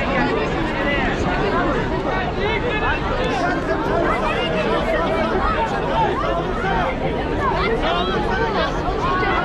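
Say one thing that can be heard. A large crowd of men and women chatter loudly all around, close by.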